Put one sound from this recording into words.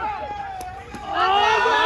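Young men shout loudly with excitement.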